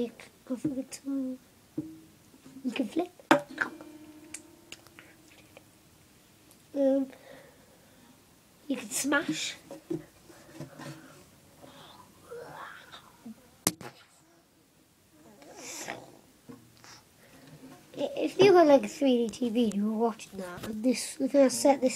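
A young girl talks with animation close to the microphone.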